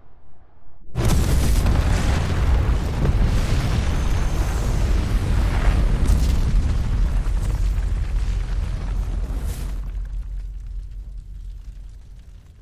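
A huge explosion booms and rumbles, then slowly fades.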